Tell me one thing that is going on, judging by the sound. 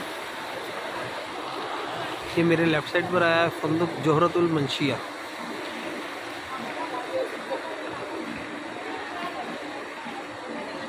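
People murmur in a busy street.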